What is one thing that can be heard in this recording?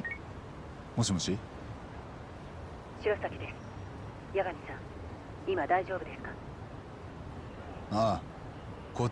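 A man answers a phone calmly.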